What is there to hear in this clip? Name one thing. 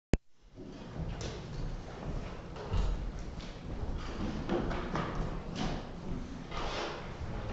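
Adults murmur quietly in a large, echoing room.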